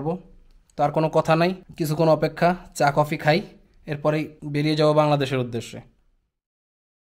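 A man talks up close with animation.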